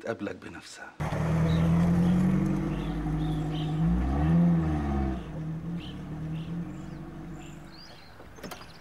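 A car engine idles and rumbles as the car drives off.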